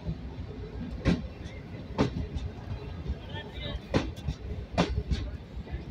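Train wheels clack loudly over rail joints.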